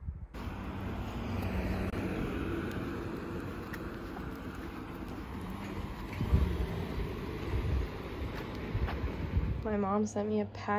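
Footsteps tap on paving stones outdoors.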